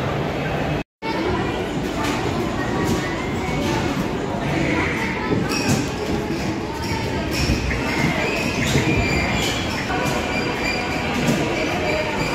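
Arcade game machines play loud electronic music and beeping effects.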